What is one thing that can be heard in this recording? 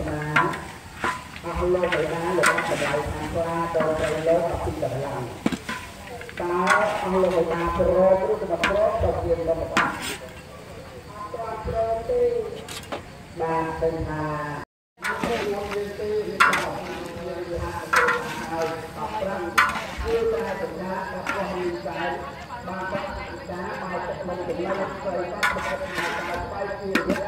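A metal spatula scrapes and knocks against a wok.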